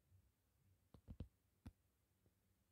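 A book's cover taps and rustles as it is handled.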